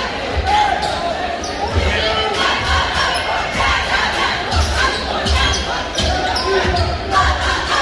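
A crowd murmurs and chatters in a large echoing gym.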